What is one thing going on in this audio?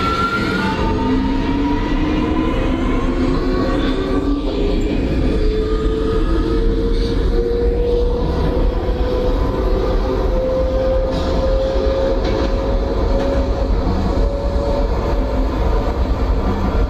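A train's electric motors whine, rising steadily in pitch as it speeds up.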